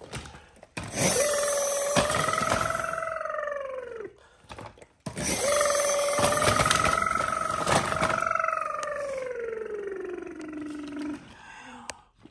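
A toy police car wails an electronic siren that rises and falls.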